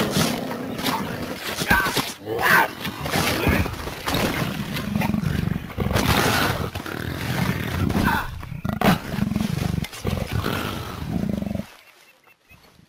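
A tiger growls.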